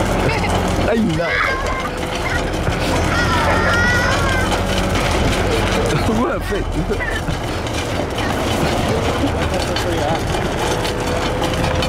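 A young boy laughs and shouts with excitement.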